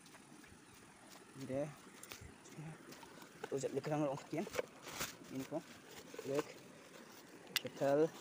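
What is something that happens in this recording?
A shallow stream trickles over stones.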